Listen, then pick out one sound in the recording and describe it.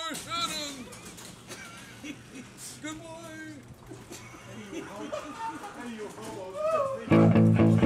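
A garage door rumbles and rattles as it rolls shut.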